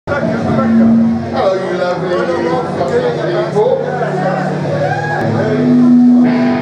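A live rock band plays loudly.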